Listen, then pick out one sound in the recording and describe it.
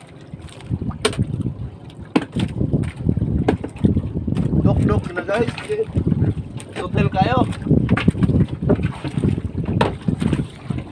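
Footsteps thump on the wooden boat deck.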